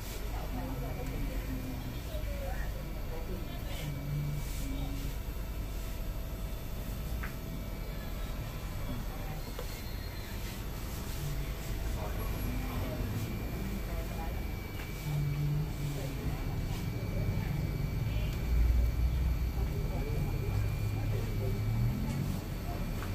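An elderly man speaks quietly nearby.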